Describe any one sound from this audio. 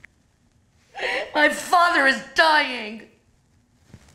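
A middle-aged woman speaks in a tearful, breaking voice.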